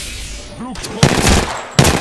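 A gun fires in loud, sudden bursts.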